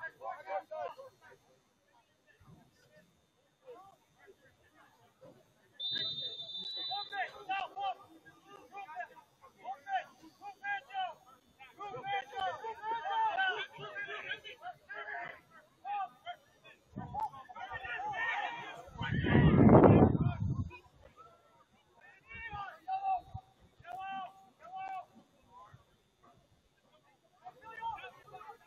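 Young men shout and call out across an outdoor field, some distance away.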